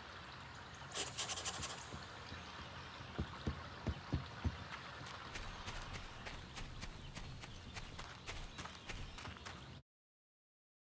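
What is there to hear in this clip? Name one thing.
Footsteps tread steadily at a walking pace.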